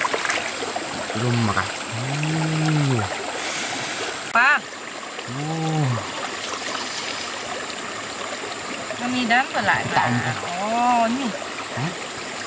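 A shallow stream trickles softly nearby.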